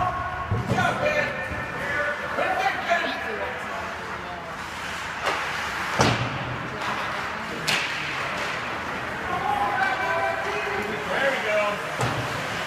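Hockey skates scrape across ice in a large echoing rink.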